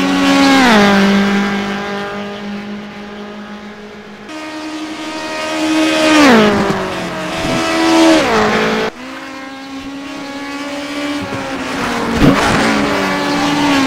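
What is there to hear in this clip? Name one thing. A racing car engine roars, rising and dropping in pitch as it shifts gears.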